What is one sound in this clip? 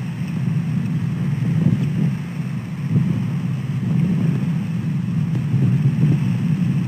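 Wind rumbles steadily and gustily across the microphone outdoors.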